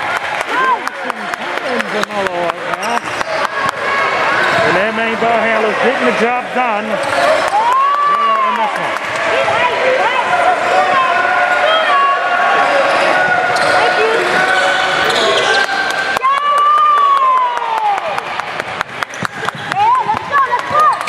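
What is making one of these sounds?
Sneakers squeak sharply on a hard court floor in a large echoing gym.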